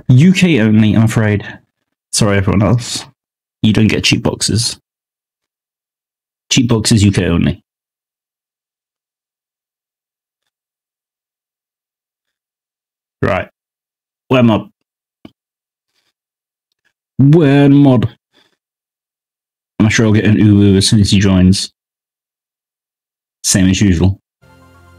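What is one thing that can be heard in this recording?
A man talks casually into a close microphone, in bursts with long pauses.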